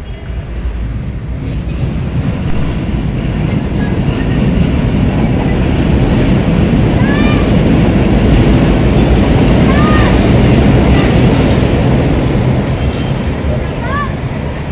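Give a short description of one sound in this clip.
An elevated train rumbles past overhead, growing loud and then easing off.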